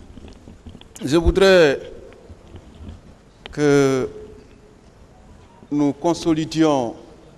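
A man speaks slowly through a microphone in a large room.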